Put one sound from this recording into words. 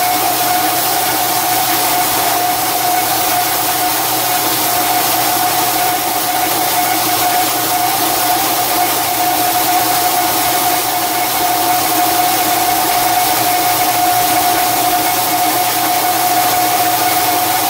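A metal lathe hums steadily as it turns.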